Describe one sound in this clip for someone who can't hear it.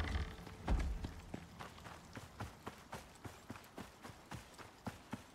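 Footsteps tread steadily over the ground.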